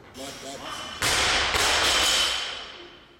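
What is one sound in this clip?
A heavy barbell crashes down onto the floor and rattles.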